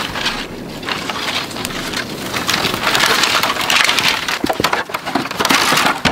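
Footsteps crunch over stones.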